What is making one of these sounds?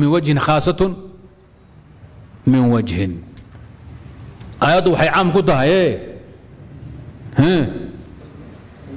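A man speaks slowly and with feeling into a microphone, in bursts with pauses between them.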